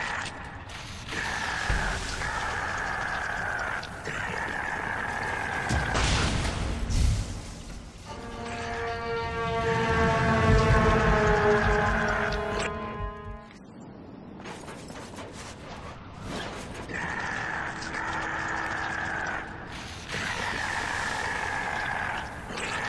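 Flames roar in bursts from a robot's jets.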